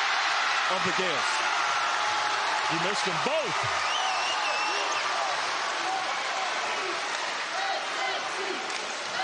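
A large crowd roars and cheers in an echoing arena.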